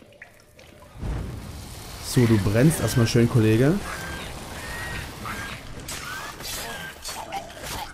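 A sword swings and strikes with sharp hits.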